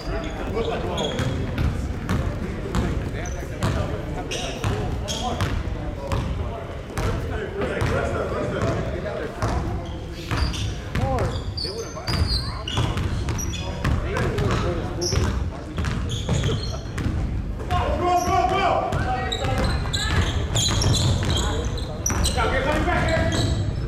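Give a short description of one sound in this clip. Men shout and call out in a large echoing gym.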